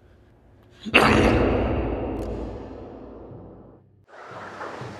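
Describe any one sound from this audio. Glasses clatter onto a hard floor.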